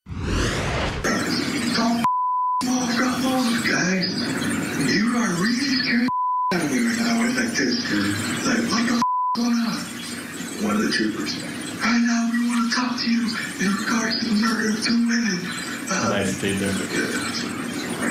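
A man speaks calmly, heard through a recording.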